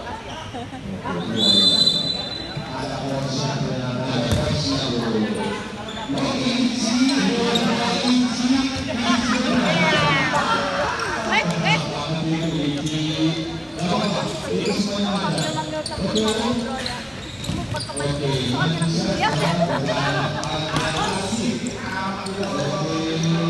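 A ball thumps as players kick it.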